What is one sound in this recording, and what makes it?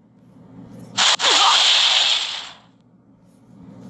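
A magic blast bursts with a loud hiss.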